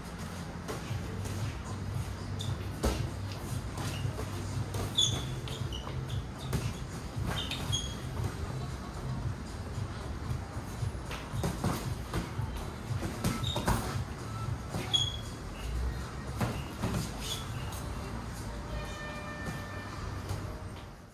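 Sneakers squeak and shuffle on a hard floor.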